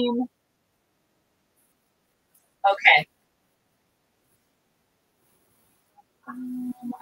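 A woman talks with animation close to a microphone, in short bursts.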